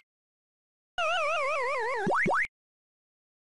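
An arcade maze game plays a falling electronic tone as the player character dies.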